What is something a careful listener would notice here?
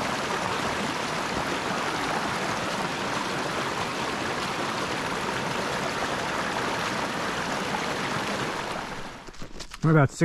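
A small stream splashes and gurgles over rocks close by.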